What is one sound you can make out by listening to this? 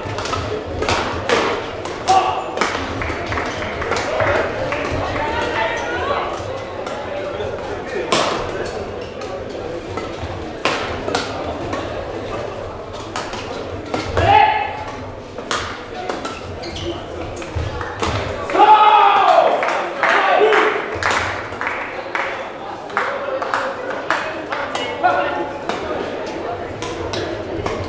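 Rackets strike a shuttlecock again and again in a large echoing hall.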